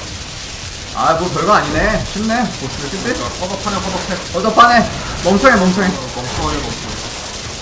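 Young men talk with animation into microphones.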